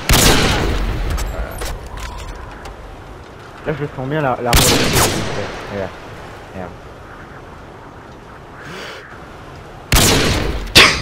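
Loud rifle shots crack and echo.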